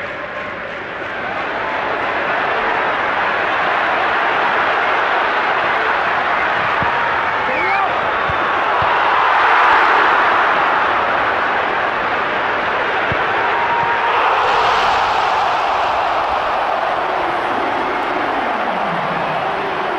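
A large stadium crowd roars and cheers loudly, swelling and falling.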